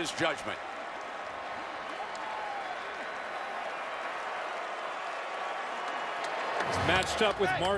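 A large crowd roars and cheers in a big open stadium.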